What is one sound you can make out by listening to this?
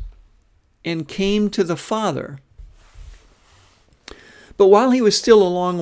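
A middle-aged man speaks calmly and expressively into a close microphone, in short phrases with pauses.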